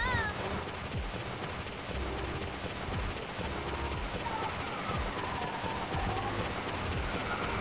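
Quick footsteps patter on a hard surface.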